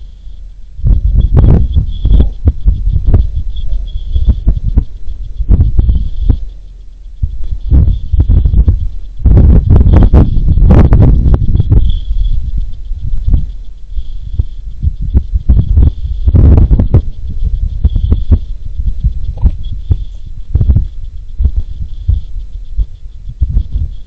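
Wind gusts and buffets outdoors.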